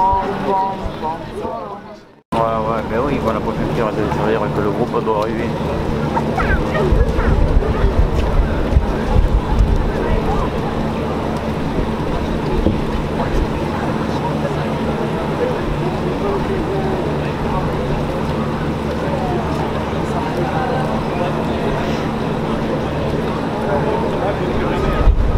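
A crowd of people talks and murmurs outdoors.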